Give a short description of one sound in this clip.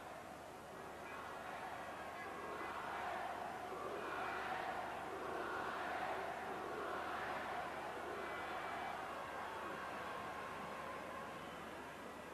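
A large stadium crowd murmurs and roars in the distance.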